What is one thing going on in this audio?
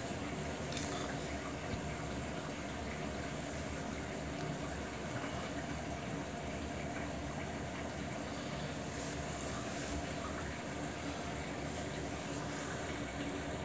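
Wet laundry tumbles and sloshes inside a washing machine drum.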